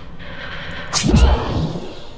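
A rifle fires a single loud shot that booms and fades.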